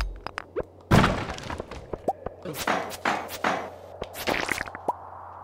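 A pickaxe strikes and smashes rocks.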